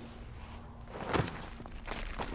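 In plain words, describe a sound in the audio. A man lands heavily on rubble after a jump.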